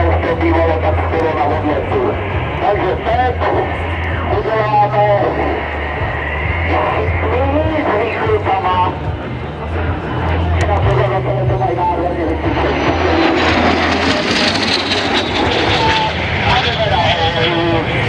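A jet engine roars overhead, growing louder as the plane passes close by.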